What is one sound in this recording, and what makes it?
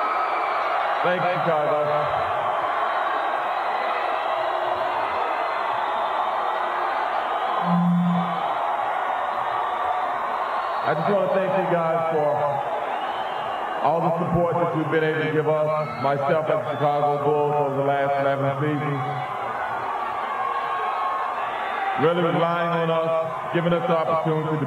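A man speaks with animation through a loudspeaker, echoing outdoors.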